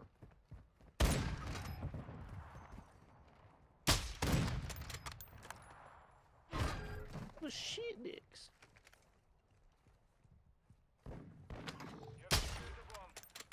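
Rifle shots crack sharply, with a ringing echo.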